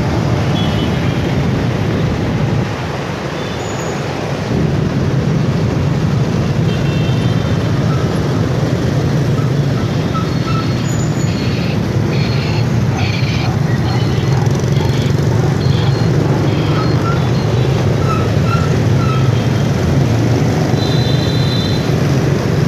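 Motorbike horns beep briefly now and then.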